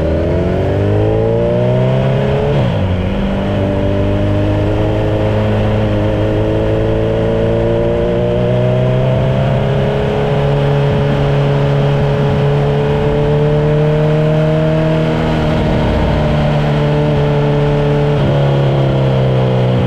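A car engine hums steadily from inside the car, rising in pitch and dropping as it shifts gears.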